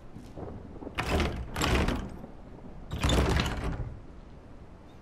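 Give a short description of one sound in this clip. A door handle rattles loudly as it is jiggled.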